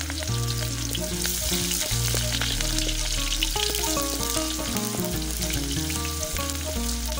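Food sizzles and crackles in hot oil.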